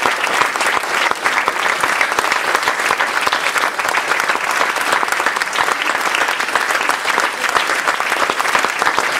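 A crowd of young people chatters loudly in a large echoing hall.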